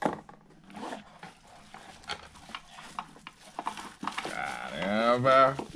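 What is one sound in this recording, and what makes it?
A plastic container clicks and knocks as it is handled.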